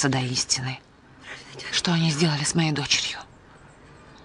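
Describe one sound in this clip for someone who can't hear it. A second woman answers briefly, close by.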